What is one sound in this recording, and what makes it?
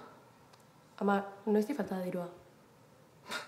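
A young woman speaks quietly and hesitantly close by.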